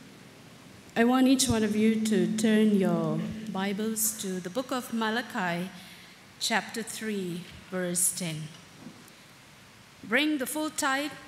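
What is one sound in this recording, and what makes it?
A woman speaks into a microphone over a loudspeaker in a large echoing hall.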